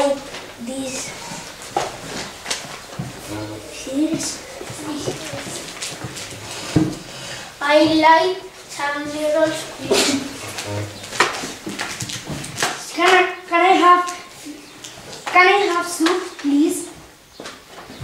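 A young boy speaks in a high voice, close by.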